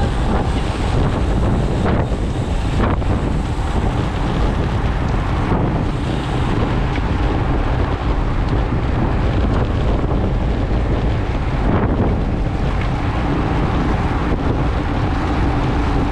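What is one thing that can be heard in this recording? Wind rushes loudly across a microphone outdoors.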